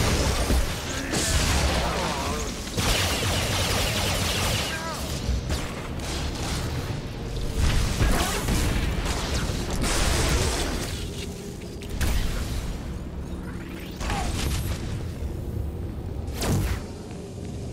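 Energy blasts and weapon strikes crackle and boom in a fast fight.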